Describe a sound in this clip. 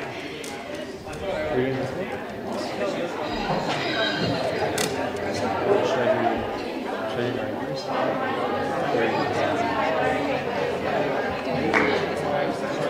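An acoustic guitar is strummed and picked.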